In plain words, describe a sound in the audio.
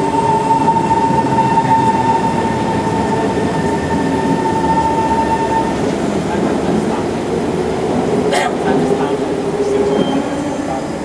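A train rumbles in and slows with a squeal of brakes.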